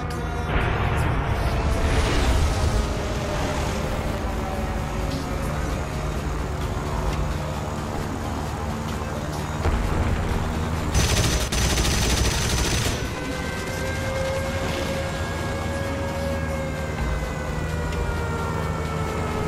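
A piston-engine fighter plane drones in flight.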